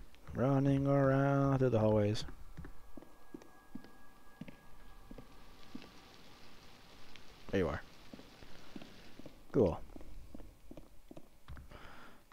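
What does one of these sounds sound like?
Footsteps thud on hard stairs and floors.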